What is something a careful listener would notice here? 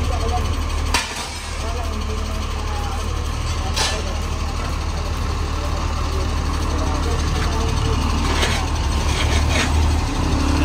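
A metal tool strikes concrete in sharp, separate knocks.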